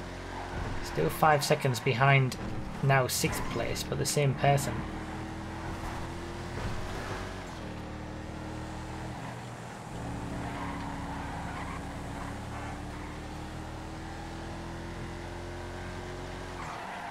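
A car engine hums steadily, rising and falling in pitch.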